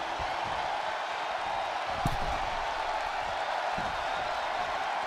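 A large crowd cheers loudly and steadily.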